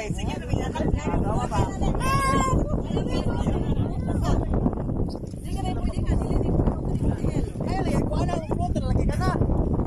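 Water splashes as people swim beside a boat.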